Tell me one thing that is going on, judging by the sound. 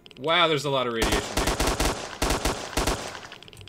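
Rifle shots fire in a rapid burst.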